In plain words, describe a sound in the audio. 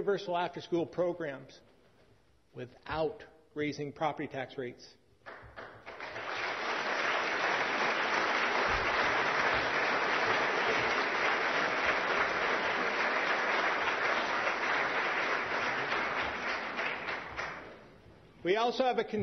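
A man speaks firmly into a microphone in a large echoing hall.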